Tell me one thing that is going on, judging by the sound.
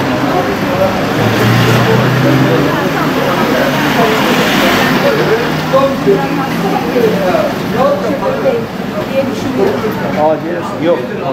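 An ambulance engine rumbles as the vehicle pulls in.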